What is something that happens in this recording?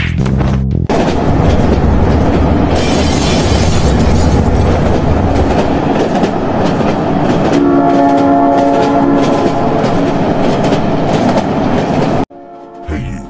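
A train rumbles along its track.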